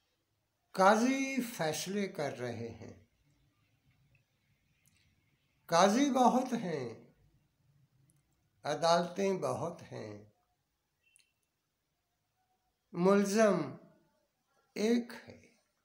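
An elderly man speaks slowly and earnestly close to the microphone, pausing between phrases.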